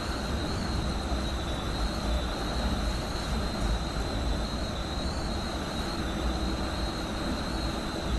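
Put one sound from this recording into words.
Train wheels whine with a steady high tone on the rails.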